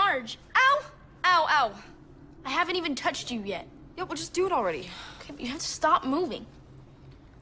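A young woman cries out loudly in pain, close by.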